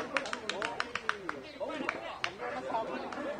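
Several men clap their hands quickly.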